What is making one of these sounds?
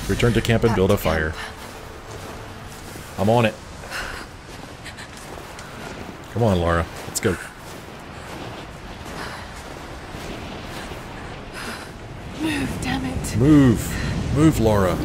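Wind blows steadily through a snowstorm.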